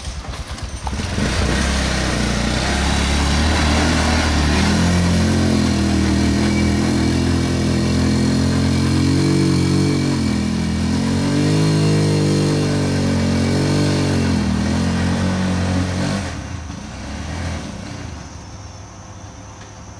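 A small motor truck's engine revs loudly and strains as it climbs, then fades away.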